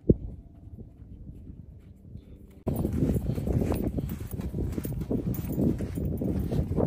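A small child's footsteps crunch softly in sand.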